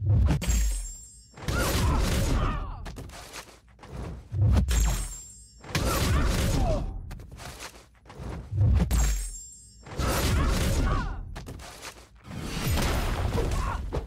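Punches and blows land with heavy thuds in a video game fight.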